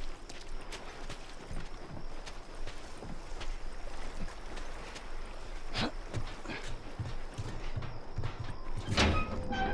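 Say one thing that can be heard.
Footsteps crunch over gravel and grass.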